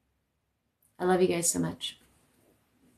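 A young woman talks close by in a relaxed, friendly voice.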